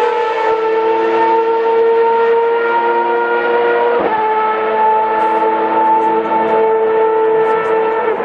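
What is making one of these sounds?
A race car engine screams at high, steady revs.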